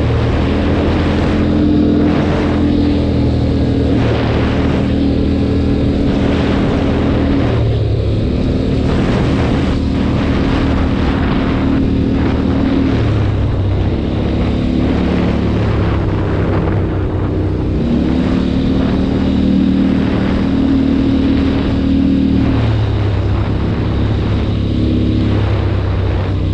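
Tyres crunch on a rough road.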